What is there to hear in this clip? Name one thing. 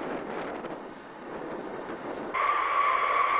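A large jet bomber's engines roar in the distance.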